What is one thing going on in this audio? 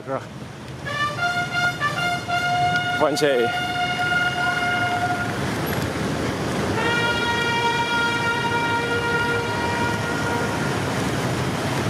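Car horns sound in long, steady blasts.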